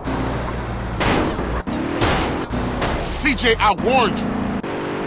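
Car tyres screech on the road.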